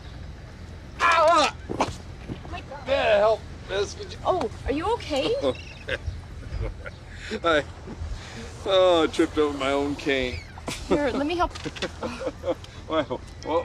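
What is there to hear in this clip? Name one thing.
An elderly man talks with a pained voice up close.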